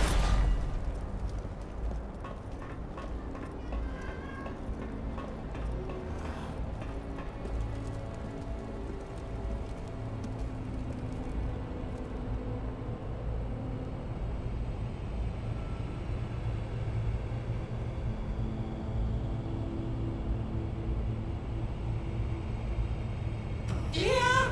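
A deep magical hum drones steadily.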